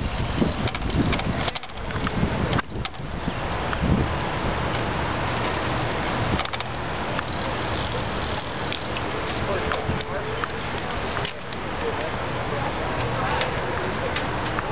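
Bicycles roll by on a paved road.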